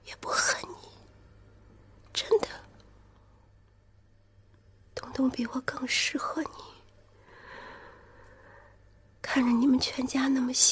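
A woman speaks softly and tearfully, close by.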